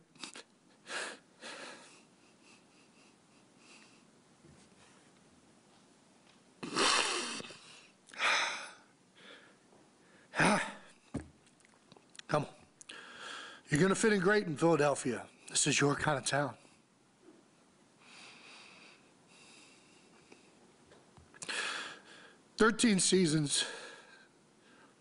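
A man sniffles and breathes heavily while crying.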